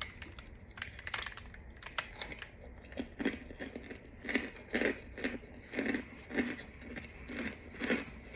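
Gloved hands squeeze and crunch crumbly chunks.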